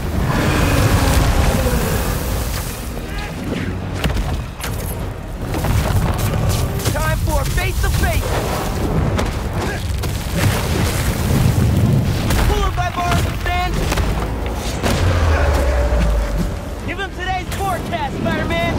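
A huge creature rumbles and roars deeply.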